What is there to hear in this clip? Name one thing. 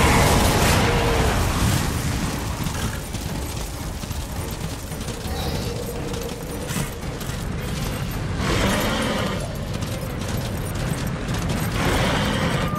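Hooves gallop over hard ground.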